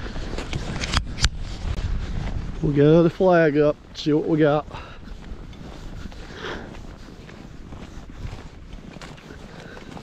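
Boots crunch across snow.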